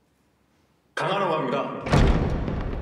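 A young man speaks into a microphone, echoing through a large hall.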